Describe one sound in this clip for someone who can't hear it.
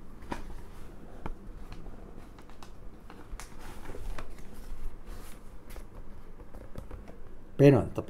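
Newspaper pages rustle and crackle.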